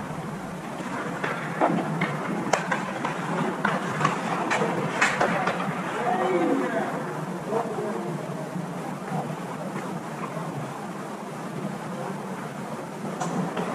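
Ice skates scrape and carve on ice in an echoing indoor rink.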